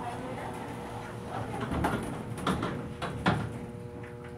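An elevator door slides shut with a thud.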